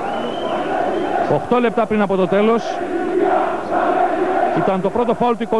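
A crowd murmurs and calls out in a large echoing hall.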